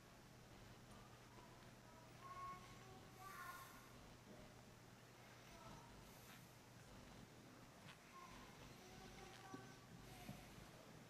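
An elderly man speaks slowly and calmly through a microphone in a large echoing hall.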